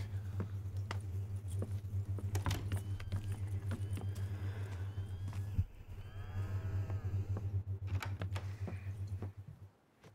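Boots thud on wooden boards as a man walks.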